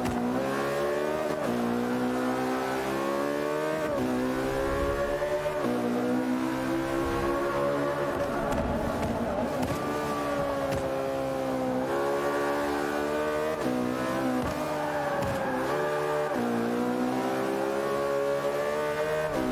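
A racing car engine roars loudly, rising in pitch through each gear and dropping sharply at each shift.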